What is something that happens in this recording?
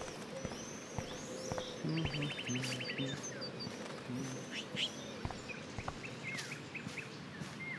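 Footsteps walk on a paved path.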